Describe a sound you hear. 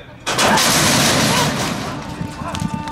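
Starting gates bang open with a loud metallic clang.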